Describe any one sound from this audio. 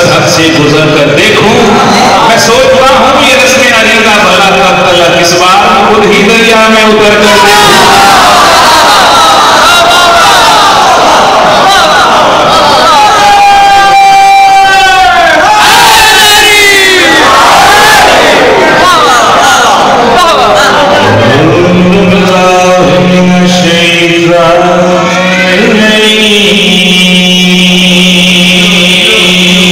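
A man recites with passion through a loud microphone in an echoing hall.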